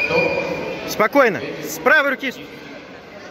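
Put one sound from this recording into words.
A man shouts sharp commands in a large echoing hall.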